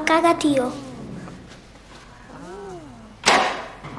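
A costumed character speaks in a high, playful voice nearby.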